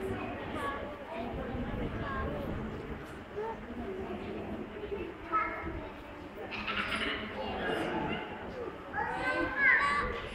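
Several people talk in an echoing hall.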